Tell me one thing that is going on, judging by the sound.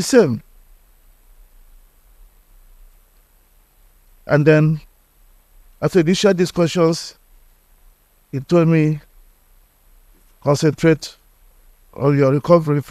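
A middle-aged man speaks calmly and slowly into a microphone, with long pauses.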